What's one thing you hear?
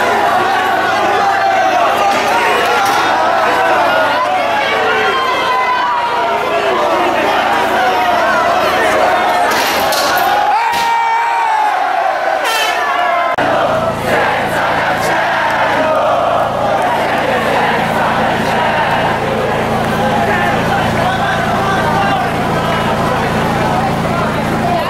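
A large crowd of young men and women shouts and chants loudly outdoors.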